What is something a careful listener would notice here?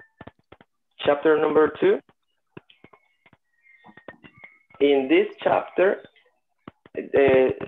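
A young man speaks calmly through a microphone on an online call, in short bursts with pauses.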